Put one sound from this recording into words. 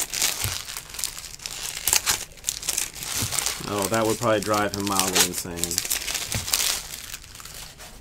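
Foil wrapping crinkles and rustles close by.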